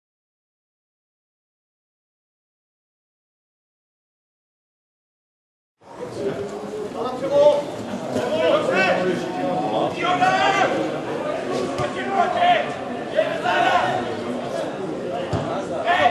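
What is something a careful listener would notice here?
A football is kicked on a grass pitch.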